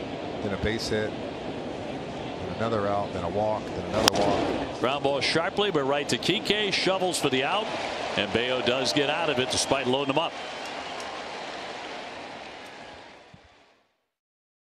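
A large crowd murmurs and cheers in a big open stadium.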